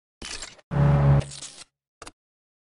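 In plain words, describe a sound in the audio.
A car engine revs.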